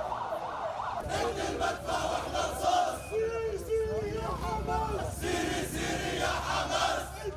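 A crowd of men shout and talk excitedly outdoors.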